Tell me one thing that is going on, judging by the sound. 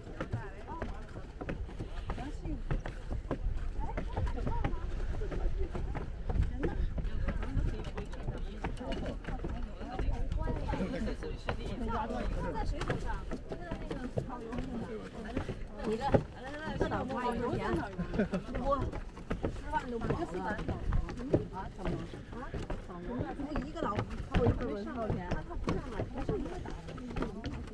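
Footsteps thud on wooden steps.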